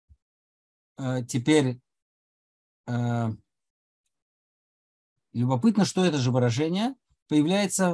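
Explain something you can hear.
An elderly man speaks calmly over an online call, in short bursts with pauses.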